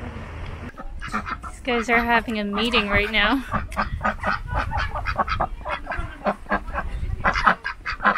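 Ducks quack loudly close by.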